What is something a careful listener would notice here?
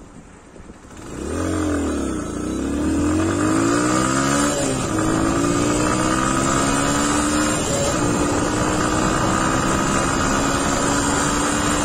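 A motorcycle engine idles with a steady throb.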